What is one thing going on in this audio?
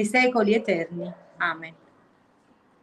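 A middle-aged woman speaks calmly over an online call.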